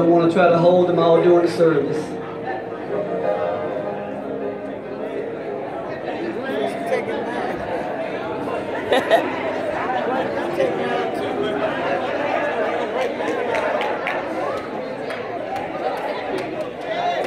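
A crowd of men and women chatter and call out.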